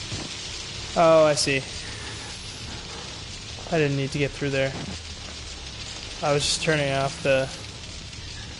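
A young man speaks in short, excited bursts close to a microphone.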